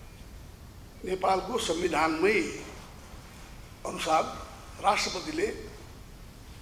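An elderly man speaks calmly into a microphone, in short bursts with pauses.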